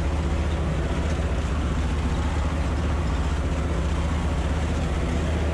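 A tractor rumbles and rattles over a bumpy field.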